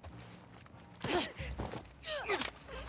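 Bodies scuffle and thump in a close struggle.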